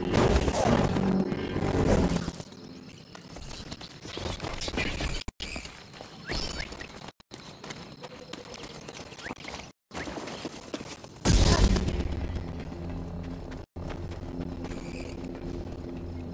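A lightsaber hums and buzzes as it swings.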